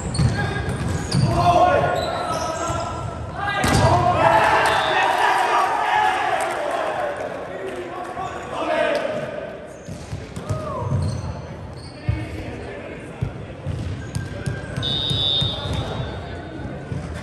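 Young men call out and shout to each other during play.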